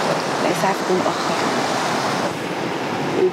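Waves wash onto the shore nearby.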